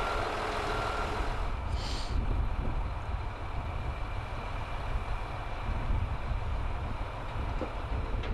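A truck crane's engine hums steadily.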